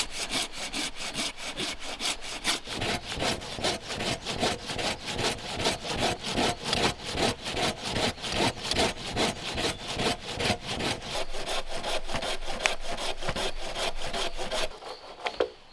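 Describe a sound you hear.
A hand saw cuts through a branch with quick, steady strokes.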